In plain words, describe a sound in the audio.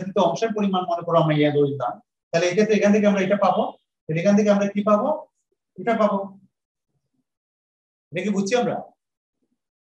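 A man speaks calmly and explains in short bursts.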